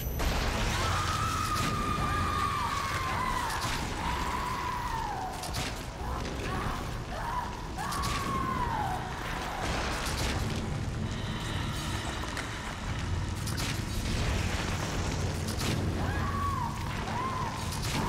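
A creature lets out high, wailing screeches.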